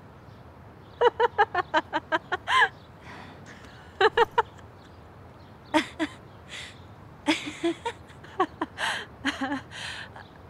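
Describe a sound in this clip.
A young woman laughs heartily.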